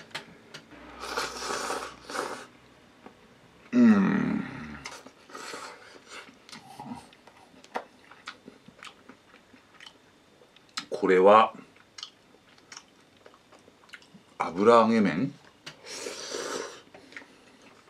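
A man slurps noodles loudly up close.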